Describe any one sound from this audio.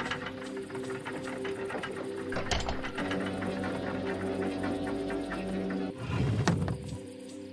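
Large gears grind and clank as they turn.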